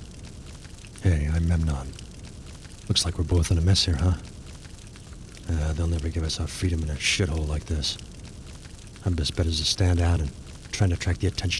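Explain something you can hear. A man speaks calmly in a low, gruff voice.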